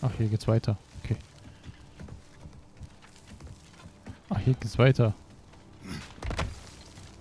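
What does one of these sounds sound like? Hands thump on wooden beams during a climb.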